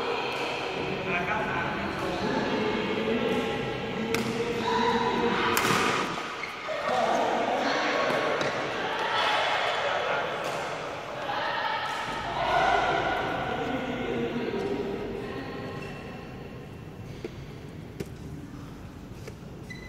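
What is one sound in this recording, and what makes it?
Young men talk and call out across a hall.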